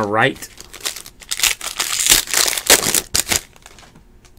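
Hands tear open a foil card pack wrapper, which crinkles.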